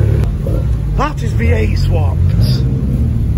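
A tuned sedan revs hard as it pulls away.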